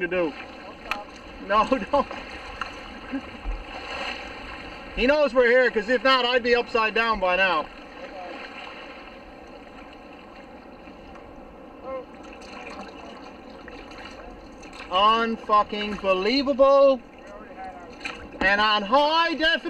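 Water laps against a kayak's hull.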